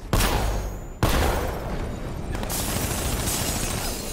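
Glass shatters and scatters.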